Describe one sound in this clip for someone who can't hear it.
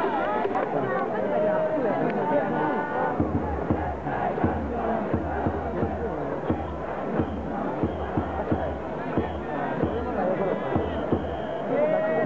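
Several men talk quietly together outdoors.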